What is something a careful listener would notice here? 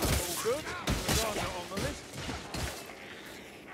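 Heavy blows thud and slash into a creature.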